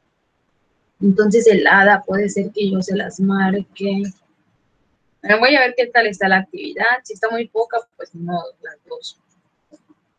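A young woman speaks calmly through a computer microphone, as in an online call.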